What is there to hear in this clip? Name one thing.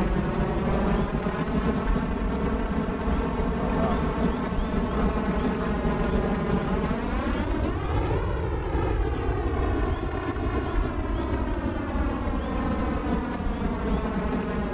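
A vehicle's engine drones steadily, rising in pitch for a moment and then sinking back.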